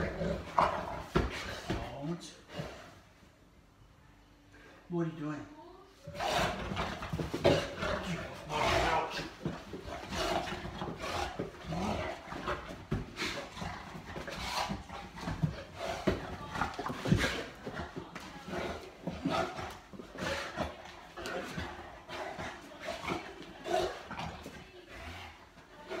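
Dog paws scrabble and thump on a hard floor.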